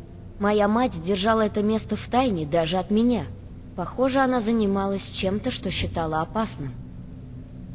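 A young woman speaks calmly and closely.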